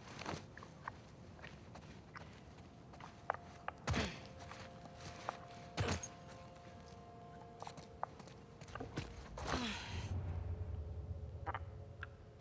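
Footsteps scuff on a hard floor.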